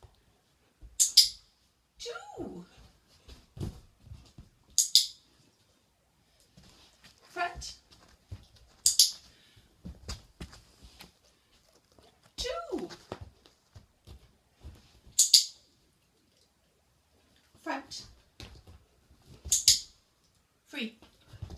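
A dog's paws thump and patter on a rubber balance disc.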